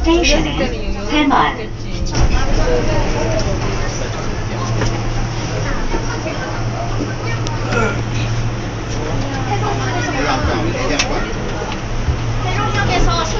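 A train rumbles steadily along its track with a low hum.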